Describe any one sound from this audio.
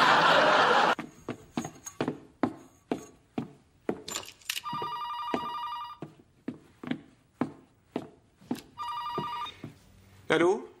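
Footsteps thud on stairs and a hard floor.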